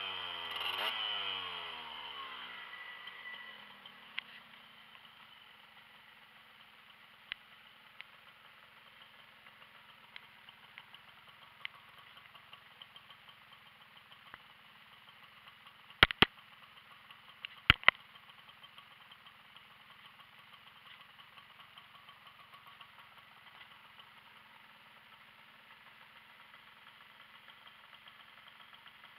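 A small moped engine idles with a steady, rapid putter.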